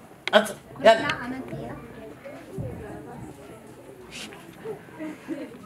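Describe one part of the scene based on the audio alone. A woman speaks calmly into a microphone in a room.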